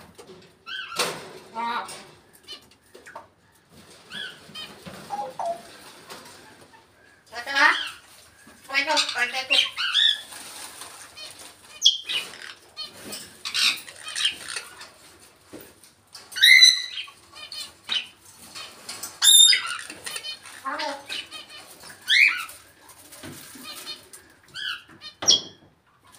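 A parrot squawks, whistles and chatters in short bursts close by.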